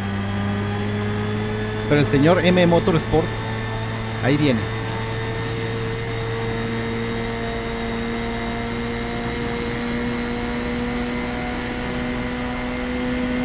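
A racing car engine drones steadily and slowly rises in pitch.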